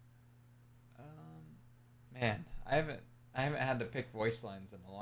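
A young man speaks casually over an online call.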